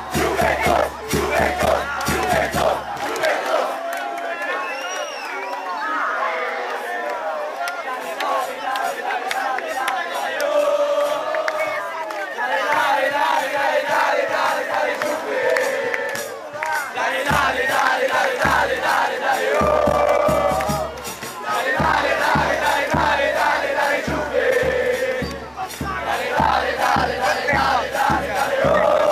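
A large crowd of fans sings and chants loudly close by, outdoors.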